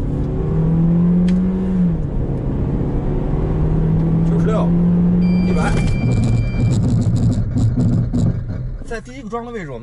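A car engine hums loudly while accelerating.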